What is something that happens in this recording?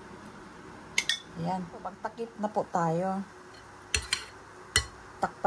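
A spoon clinks and taps against small cups.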